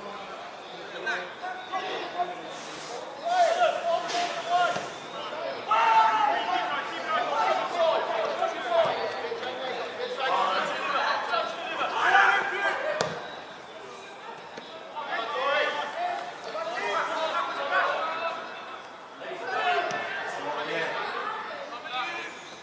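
Players shout and call out to each other across an open outdoor pitch.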